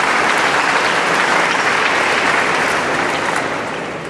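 A young woman speaks into a microphone in a large echoing hall.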